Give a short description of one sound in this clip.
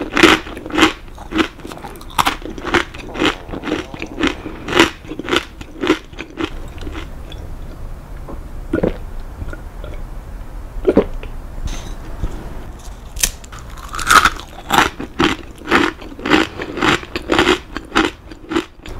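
A person crunches loudly on crisp crackers close up.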